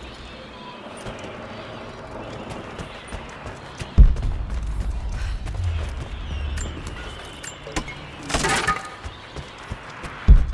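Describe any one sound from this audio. Footsteps crunch quickly over snow and wooden boards.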